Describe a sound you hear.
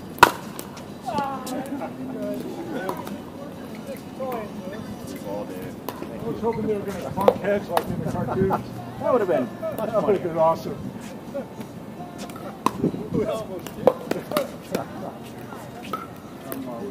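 Men talk casually nearby, outdoors.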